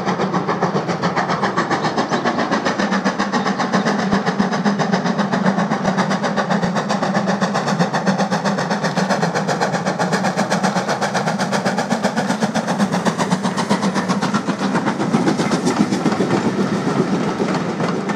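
A steam locomotive chuffs hard and fast as it approaches and passes.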